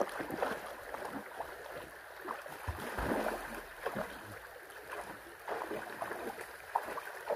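A stream flows and burbles steadily.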